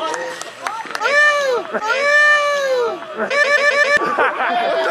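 A man celebrates with loud shouts.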